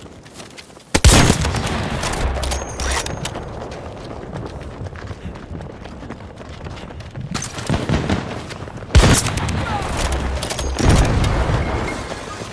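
Gunshots crack in loud, sharp bursts.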